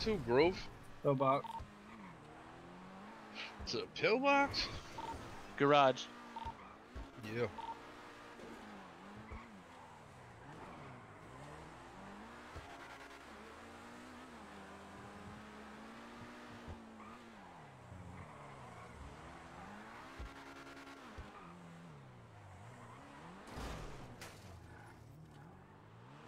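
A sports car engine revs and roars, rising and falling in pitch.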